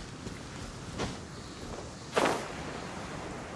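A sharp whoosh of air bursts out and fades.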